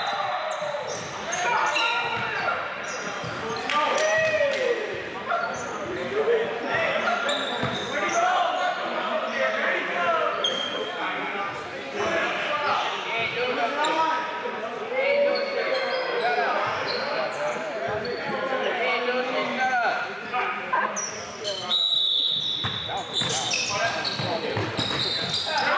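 Young men call out and talk across an echoing gym.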